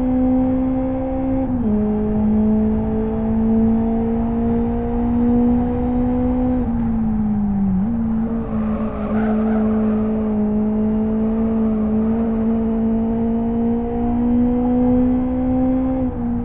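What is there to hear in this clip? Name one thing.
A racing car engine drones steadily, its pitch dropping sharply with each gear shift.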